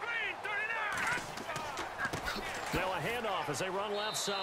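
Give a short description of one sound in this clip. Football players collide in a tackle with a heavy thud.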